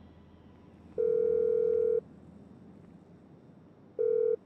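A phone ringing tone sounds in long, steady beeps.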